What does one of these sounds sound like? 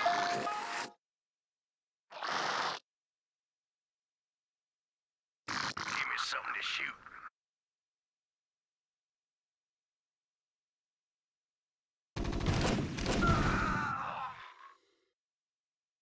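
Short game sound effects play in brief bursts with silence between them.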